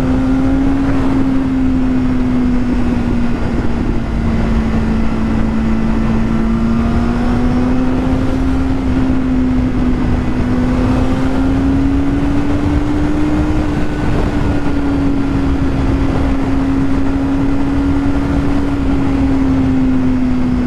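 A motorcycle engine hums steadily at cruising speed, rising and falling slightly in pitch.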